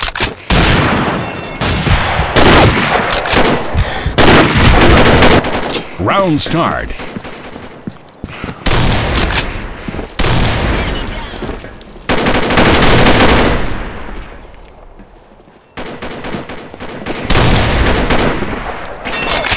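Gunshots fire loudly in rapid bursts.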